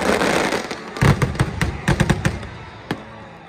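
Firework shells burst with deep, booming bangs.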